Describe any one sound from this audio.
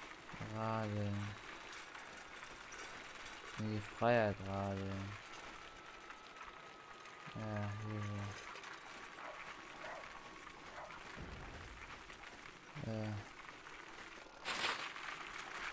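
A bicycle rolls along a road and then over grass.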